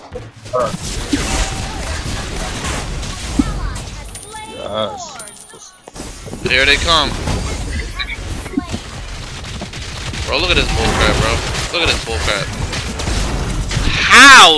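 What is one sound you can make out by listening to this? Spell effects whoosh and crash in quick bursts.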